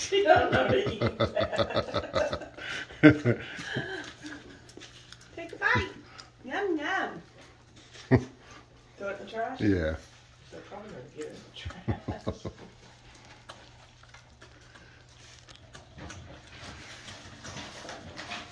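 A dog licks and laps wet food with quick, wet smacking sounds.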